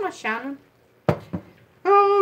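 A knock sounds as a jar is set down.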